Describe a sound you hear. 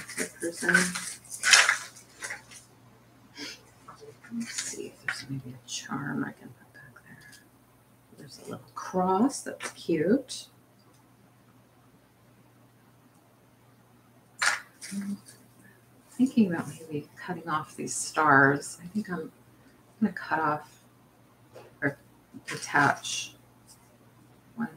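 Small beads and trinkets clink and rattle as they are sorted by hand.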